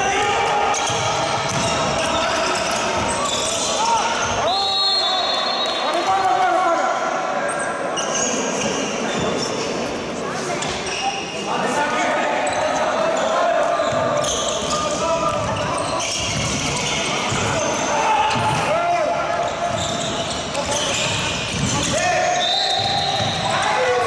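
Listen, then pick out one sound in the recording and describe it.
Players' shoes squeak and thud on a wooden court in an echoing sports hall.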